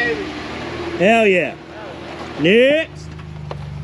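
A truck engine revs up sharply twice.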